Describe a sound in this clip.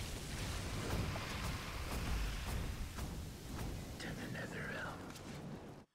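Fiery spell effects roar and crackle in a battle.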